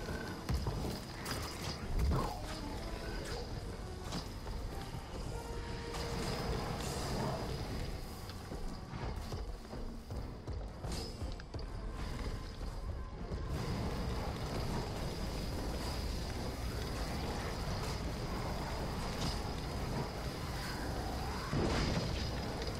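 A large creature thumps heavily as it stomps and strikes.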